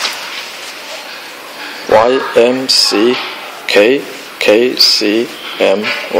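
A hand handles plastic parts with soft clicks and taps.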